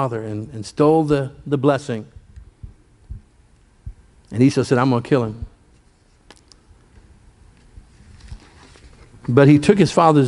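An elderly man speaks slowly and deliberately into a microphone, with pauses between phrases.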